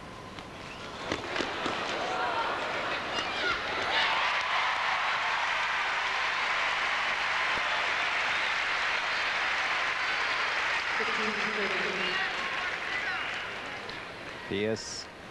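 A large crowd cheers and applauds loudly, then slowly dies down.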